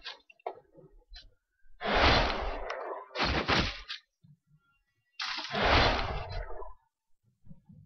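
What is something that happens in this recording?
Magic spells burst with loud whooshing blasts.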